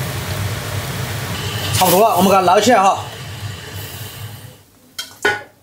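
Food sizzles and bubbles in a hot pan.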